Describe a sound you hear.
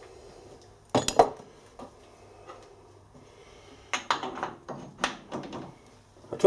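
Metal gears clink as a hand handles them.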